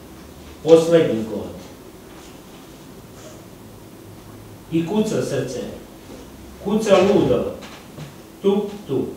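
An elderly man reads aloud slowly and calmly, close by, with long pauses.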